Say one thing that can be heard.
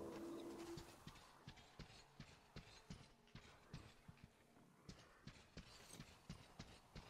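Footsteps crunch steadily over rubble and broken glass.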